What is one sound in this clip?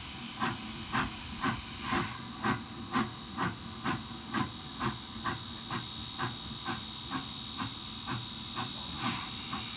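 A steam locomotive chuffs as it pulls away.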